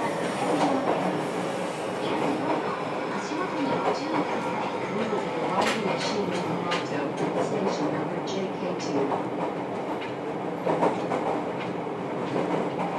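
An electric train's motor hums and whines steadily as the train runs along.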